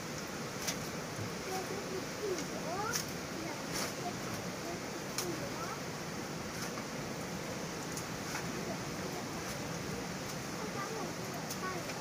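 A shovel digs into wet soil.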